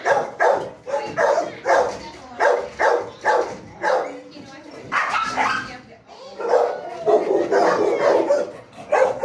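A dog barks loudly and repeatedly nearby.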